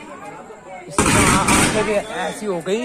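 An electrical transformer bursts with a loud crackling bang.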